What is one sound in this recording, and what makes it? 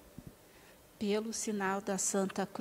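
Women sing together nearby.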